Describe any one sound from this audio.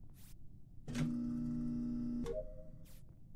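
A steady electronic tone plays as a game task runs.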